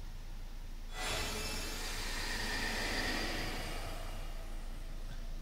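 A loud magical whoosh bursts in suddenly and slowly fades.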